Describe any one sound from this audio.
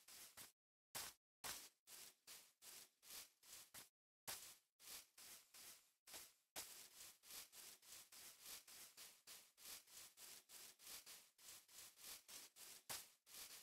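Footsteps rustle steadily on grass.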